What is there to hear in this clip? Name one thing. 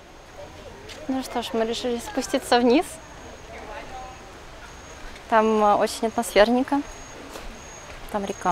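A young woman speaks brightly and close to the microphone.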